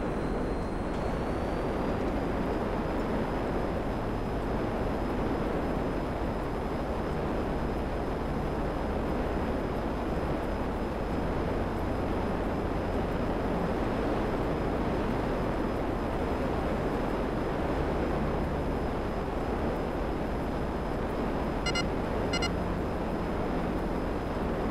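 A jet engine roars steadily with afterburner.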